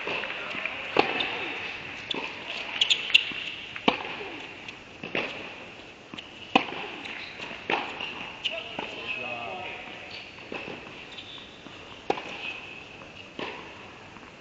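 A tennis ball is struck back and forth with sharp pops in an echoing indoor hall.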